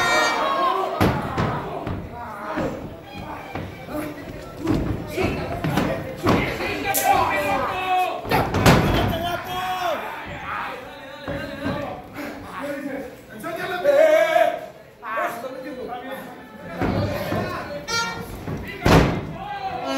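A wrestler's body slams hard onto the ring mat.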